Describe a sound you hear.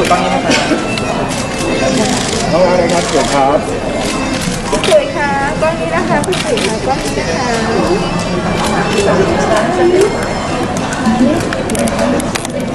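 A crowd of people chatters.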